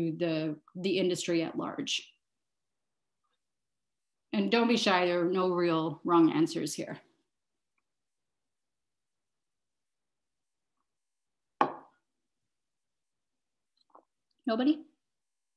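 A woman speaks calmly through an online call microphone, in short bursts with pauses.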